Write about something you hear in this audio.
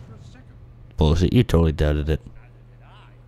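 An older man speaks heartily with animation.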